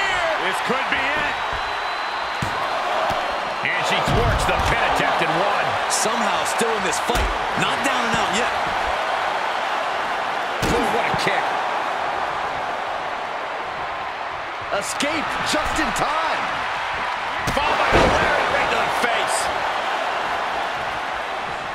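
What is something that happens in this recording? Heavy bodies thud hard onto a wrestling ring mat.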